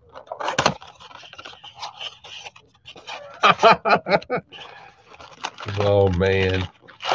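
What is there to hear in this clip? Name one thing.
A cardboard box is torn open with rustling and ripping.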